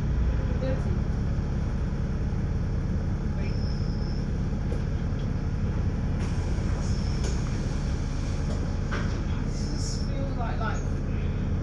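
A bus engine rumbles steadily while idling.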